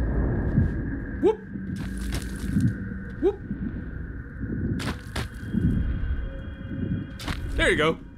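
Footsteps pad softly on the ground.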